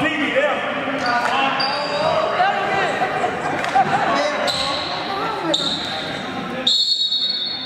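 A referee's whistle blows several times.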